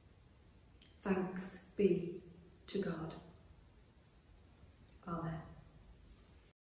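A woman speaks calmly into a microphone in an echoing room.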